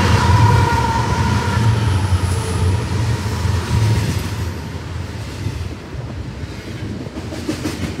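Freight cars clatter and rattle over the rails.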